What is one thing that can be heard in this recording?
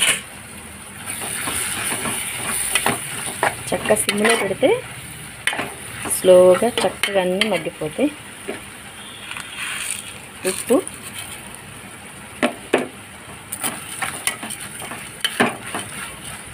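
A metal spoon scrapes and clinks against a pot while stirring.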